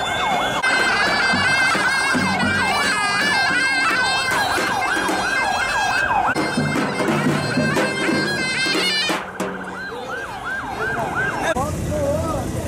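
A large drum thumps in a steady beat.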